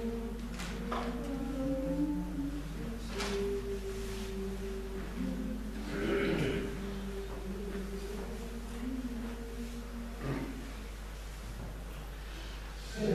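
A men's choir sings together in a reverberant hall.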